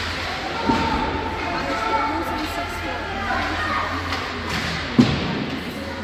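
A hockey stick strikes a puck with a sharp clack.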